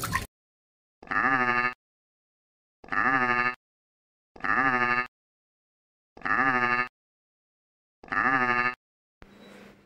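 A goat bleats loudly, again and again.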